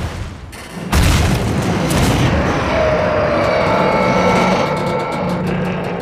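A rocket engine roars with fire.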